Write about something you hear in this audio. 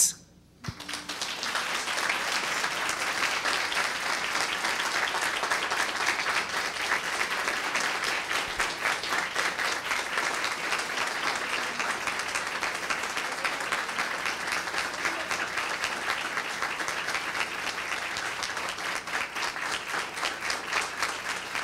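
A crowd applauds steadily in a large hall.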